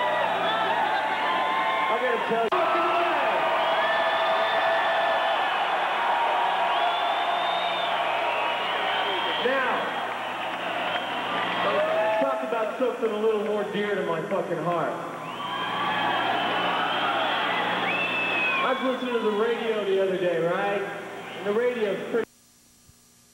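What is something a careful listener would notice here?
A loud rock band plays live in a large echoing hall.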